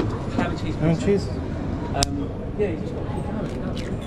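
An egg cracks against a hard edge.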